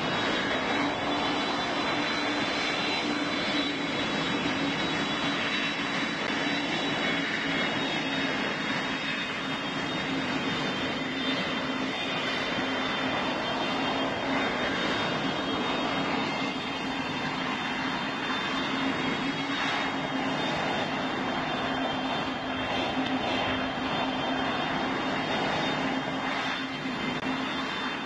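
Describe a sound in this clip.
A jet engine whines and roars steadily at idle.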